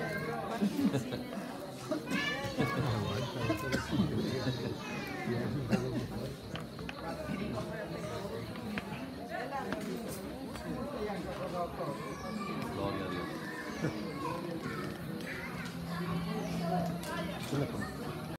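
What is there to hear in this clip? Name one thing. A crowd of adults chatters and murmurs.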